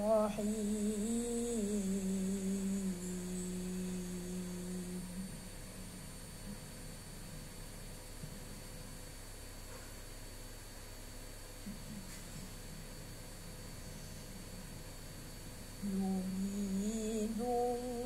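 A boy chants melodically into a microphone, holding long notes, in an echoing hall.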